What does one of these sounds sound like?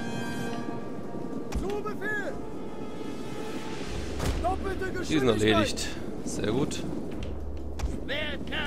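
A large crowd of soldiers clashes in battle.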